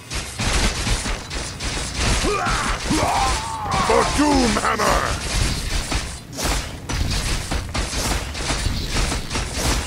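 Metal weapons clash and clang rapidly in a busy battle.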